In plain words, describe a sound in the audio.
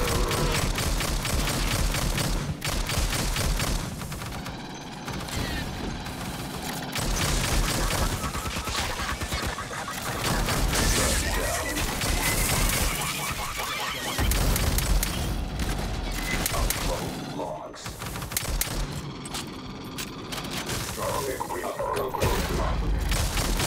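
A rapid-fire gun fires in bursts.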